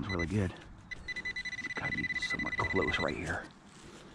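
A handheld probe gives a steady high beep.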